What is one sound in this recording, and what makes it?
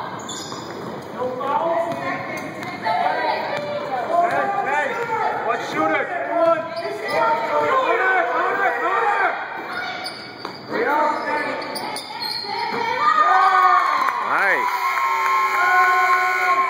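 Sneakers squeak sharply on a hard court in an echoing gym.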